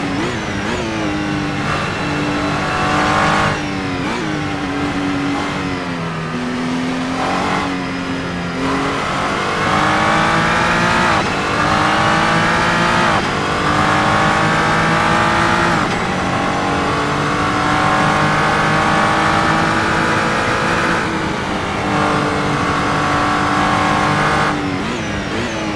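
A racing car engine roars, revving up through the gears and dropping with each shift.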